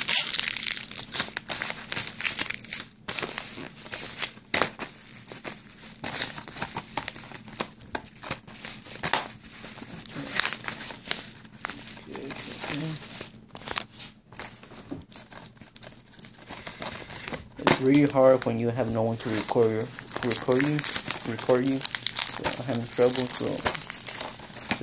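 A plastic case clacks and taps as it is handled.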